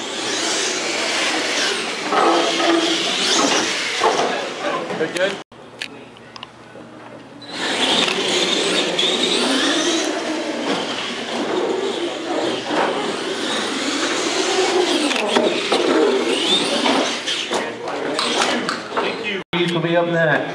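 A small electric motor whines and revs as a toy truck drives.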